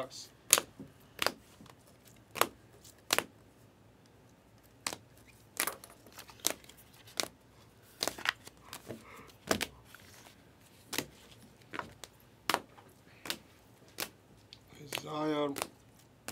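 Plastic card holders click and clack together in someone's hands.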